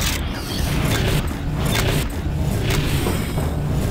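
A robot's jet thrusters hiss and roar.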